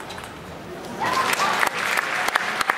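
A crowd in a large hall cheers and applauds loudly.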